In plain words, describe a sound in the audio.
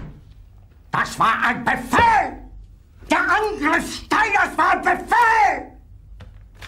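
An elderly man shouts angrily.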